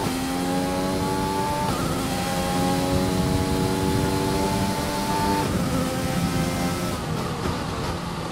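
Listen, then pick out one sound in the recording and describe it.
A racing car engine whines at high revs, rising in pitch and dropping sharply with each gear change.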